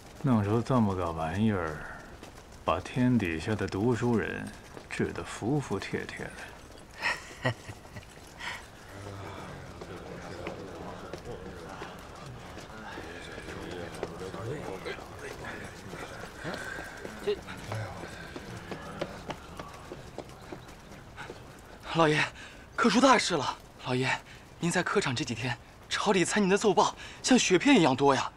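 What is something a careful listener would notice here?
A middle-aged man speaks slowly with a mocking tone, close by.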